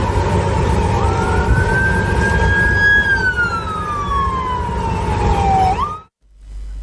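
A siren wails nearby, slowly falling in pitch.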